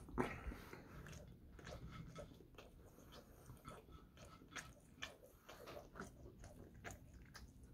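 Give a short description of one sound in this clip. A young man chews food noisily, close by.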